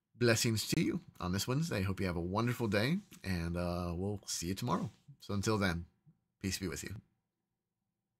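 A middle-aged man speaks calmly and warmly, close to a microphone.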